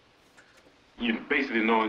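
A man's voice plays loudly through a loudspeaker.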